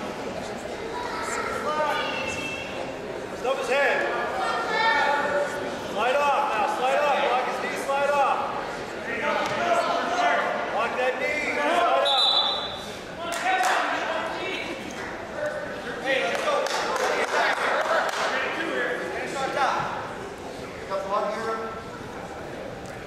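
Spectators shout with animation in a large echoing hall.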